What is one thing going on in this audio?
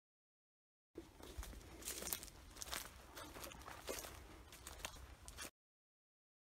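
Footsteps crunch on dry leaves and twigs along a trail.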